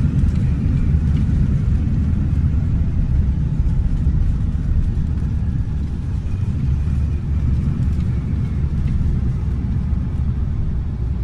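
A jet airliner's engines rumble steadily as it rolls along a runway.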